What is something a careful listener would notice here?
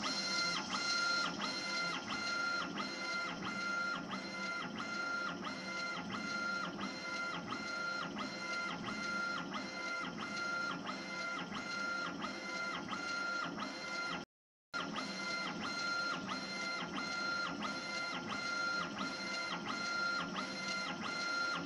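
A machine's motor whines in quick, even bursts as its head shuttles back and forth.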